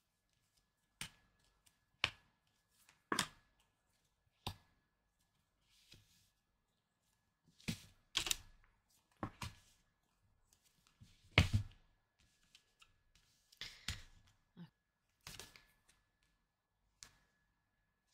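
Cards are snapped down and slid across a soft surface.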